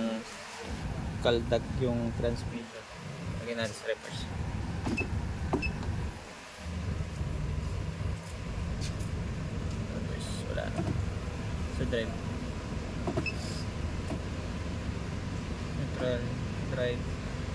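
An automatic gear lever clicks through its positions.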